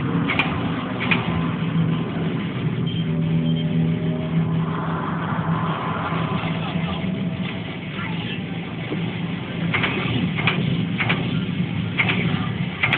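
An arcade game blasts short, sharp sound effects.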